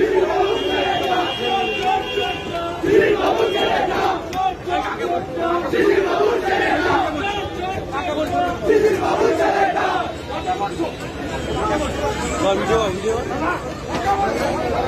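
A crowd of men talks and shouts loudly close by, outdoors.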